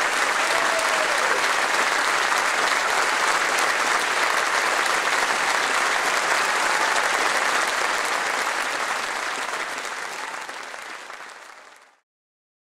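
A large audience applauds and cheers loudly in a big hall, then the applause fades away.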